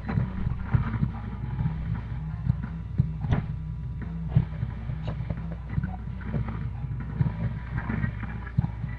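Loud rock music with heavy drums plays through small speakers.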